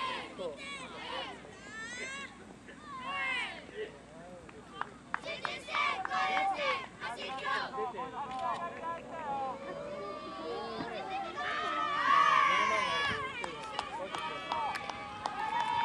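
Young players talk and call out together outdoors at a distance.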